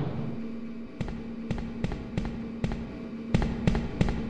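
Heavy footsteps thud slowly and steadily on stairs.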